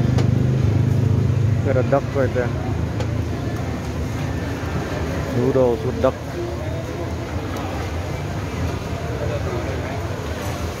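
A crowd murmurs steadily around.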